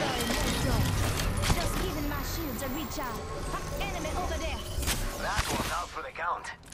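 A shield battery charges up with an electronic whir.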